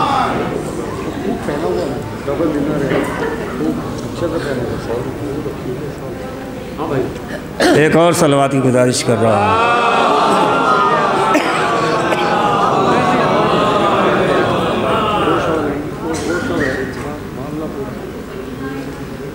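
A man recites with feeling into a microphone, heard through loudspeakers.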